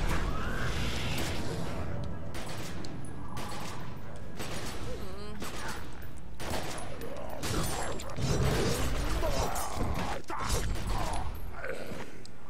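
Blows and slashes land in a close fight.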